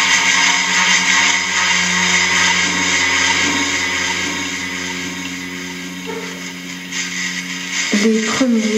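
An electric guitar plays sustained, droning notes.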